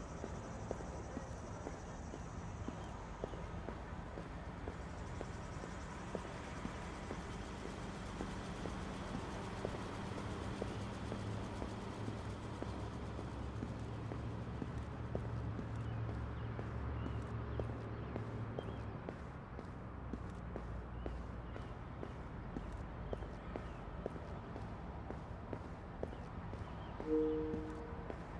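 Footsteps tap steadily on paving.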